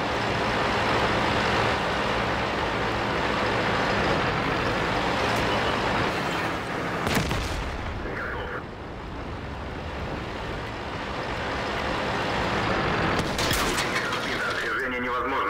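A tank engine rumbles and clanks steadily as the tank drives.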